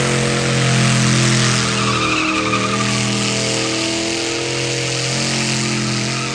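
A truck engine roars loudly at high revs.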